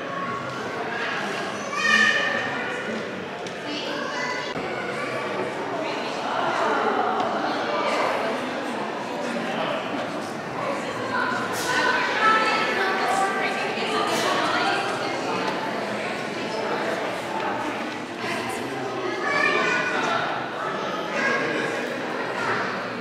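A crowd of adults murmurs and chatters in a large echoing hall.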